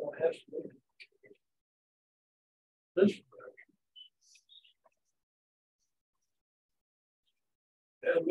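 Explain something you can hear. An elderly man speaks in short bursts, lecturing.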